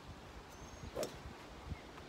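A golf club strikes a ball.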